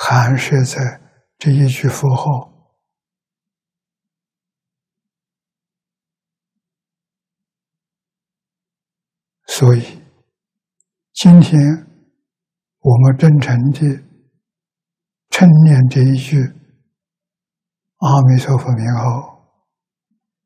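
An elderly man speaks calmly and slowly into a close microphone, in short phrases with long pauses.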